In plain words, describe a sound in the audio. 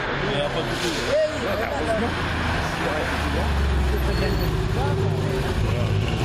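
A second rally car engine snarls and revs as the car accelerates by.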